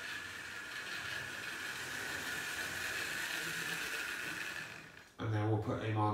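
A small electric toy train motor whirs steadily as the train runs along the track.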